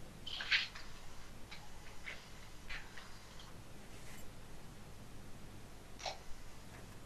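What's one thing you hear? Things rustle and knock now and then as they are handled nearby.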